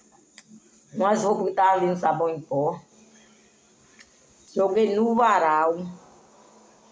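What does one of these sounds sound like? A middle-aged woman speaks with animation close to a microphone.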